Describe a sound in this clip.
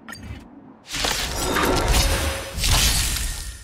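A loud rushing whoosh bursts out as a battle begins.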